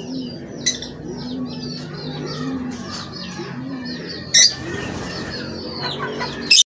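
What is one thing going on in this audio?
Small birds chirp and twitter rapidly nearby.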